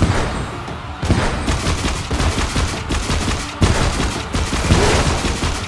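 A game's guns fire in rapid bursts.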